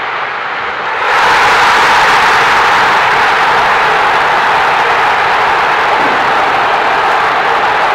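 A stadium crowd erupts in a loud roar of cheering.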